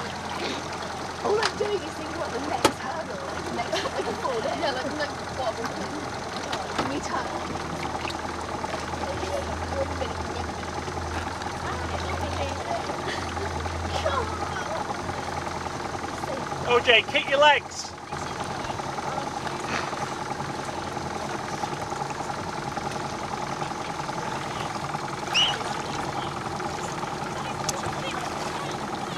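Water rushes and splashes against a moving boat's hull.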